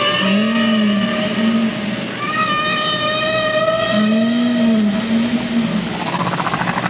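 Recorded bird song plays through loudspeakers in a large hall.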